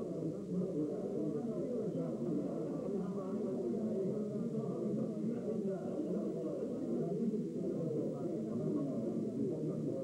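An elderly man talks animatedly close by.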